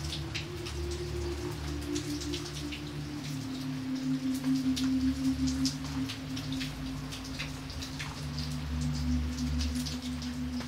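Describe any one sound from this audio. Heavy rain splashes and patters onto a puddle.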